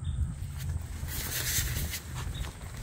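A fabric cover rustles as it is handled.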